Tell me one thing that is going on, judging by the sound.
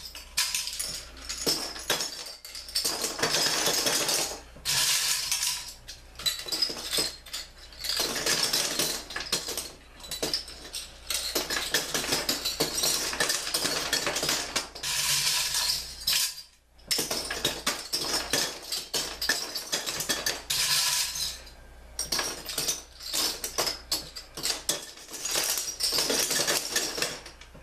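Bottle caps rattle and clink inside a box frame.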